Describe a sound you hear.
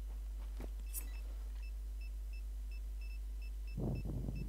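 An electronic device beeps in a quick steady rhythm.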